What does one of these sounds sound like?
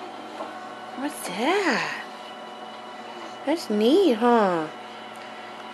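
A baby squeals and coos close by in short, rising and falling bursts.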